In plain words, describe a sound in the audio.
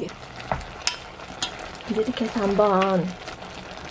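A wooden spoon scrapes and knocks against a metal pot.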